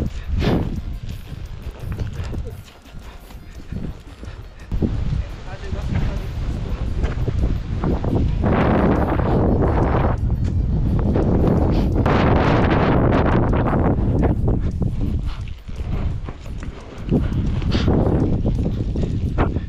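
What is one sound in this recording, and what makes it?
Wind rumbles loudly past outdoors.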